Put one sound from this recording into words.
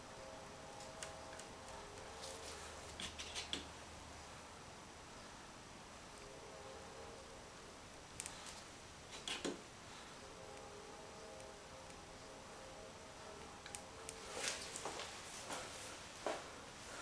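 Crumpled paper dabs and crinkles against a board in short bursts.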